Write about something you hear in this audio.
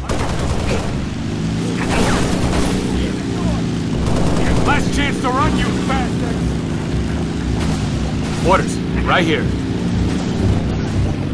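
A vehicle engine hums steadily and shifts in pitch.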